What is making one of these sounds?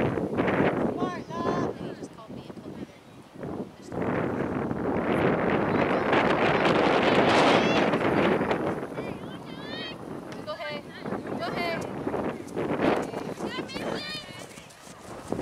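Young girls shout and call out to each other across an open field.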